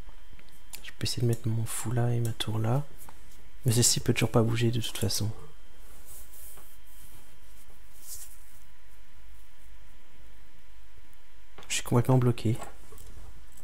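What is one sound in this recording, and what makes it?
A man speaks calmly and briefly into a close microphone.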